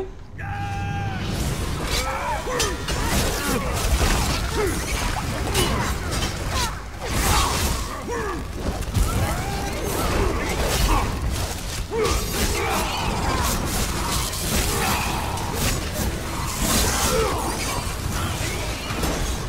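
Weapons clash and strike repeatedly in a fight.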